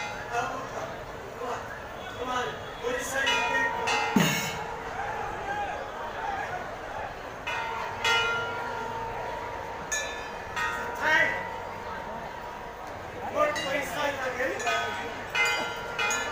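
A man speaks loudly into a microphone, heard through loudspeakers.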